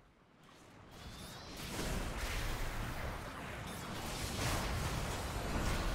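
Loud clashing battle sounds and explosions from a video game roar.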